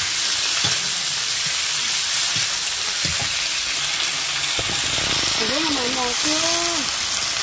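Greens sizzle loudly in a hot pan.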